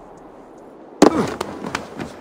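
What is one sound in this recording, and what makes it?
A heavy landing thuds onto wooden planks.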